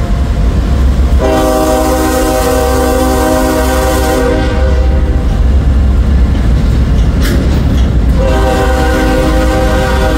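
A freight train rolls slowly past, its wheels rumbling and clacking on the rails.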